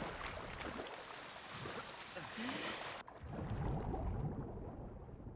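Water splashes as a swimmer dives in.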